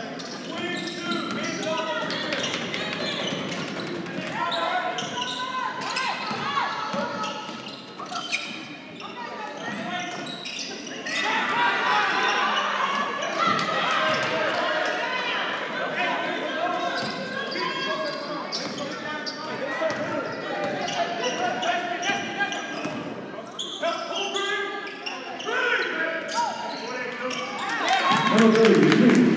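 A crowd cheers in an echoing gym.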